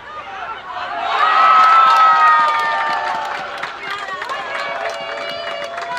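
Young men cheer and shout loudly in celebration.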